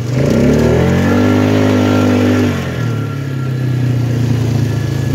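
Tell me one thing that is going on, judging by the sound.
An engine revs loudly, rising in pitch and then dropping to a steady hum.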